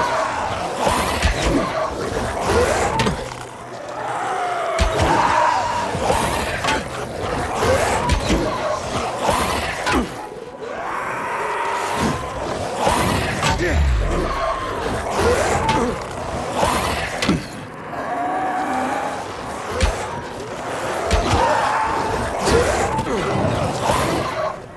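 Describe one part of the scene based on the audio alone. Zombies growl and snarl nearby.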